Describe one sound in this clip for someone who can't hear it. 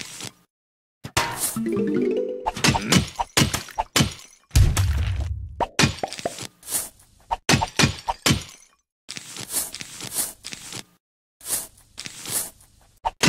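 Peas shoot with soft popping sounds.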